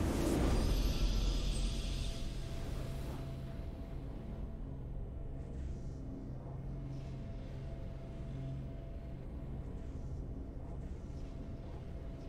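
A triumphant tune swells and lingers softly.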